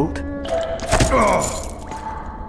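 A fist thuds against a bare body.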